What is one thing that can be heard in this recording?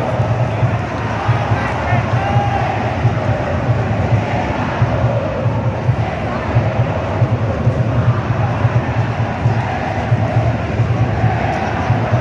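Drums beat steadily in a large stadium crowd.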